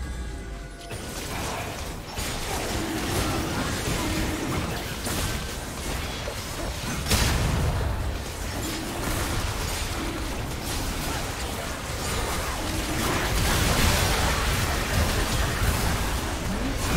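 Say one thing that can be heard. Game spell blasts, whooshes and impacts crackle in a busy battle.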